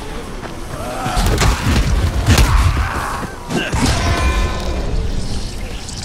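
A heavy blunt weapon thuds into a body several times.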